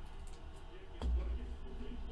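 A card lands softly on a stack of cards.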